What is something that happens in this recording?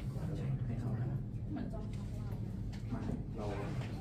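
A double bass is bowed.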